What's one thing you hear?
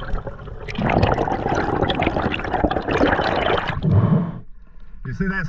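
Water rushes and bubbles loudly underwater.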